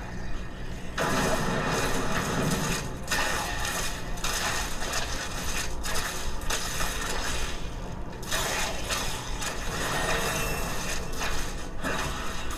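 Fire spells roar and crackle in a game battle.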